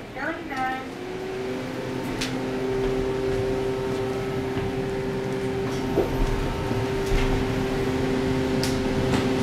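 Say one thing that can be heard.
An elevator motor hums steadily as the car moves.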